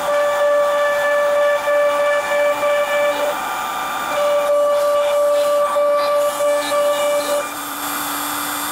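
A router whines loudly as it cuts wood, its pitch dipping now and then.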